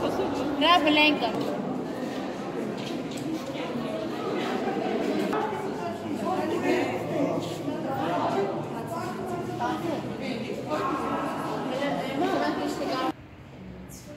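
Men sing a chant together in a large echoing hall.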